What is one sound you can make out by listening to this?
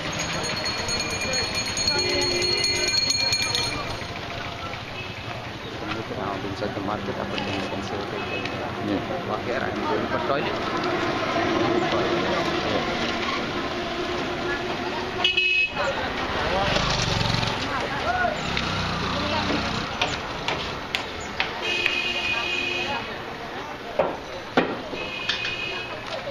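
Several men talk at once close by, in a busy crowd outdoors.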